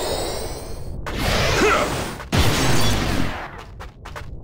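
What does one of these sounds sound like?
A heavy sword slashes with a whooshing impact.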